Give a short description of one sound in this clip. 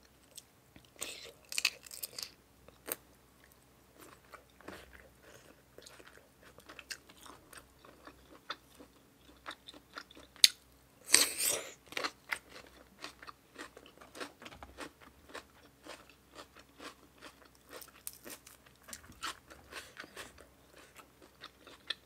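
A young woman chews and slurps food loudly and close up.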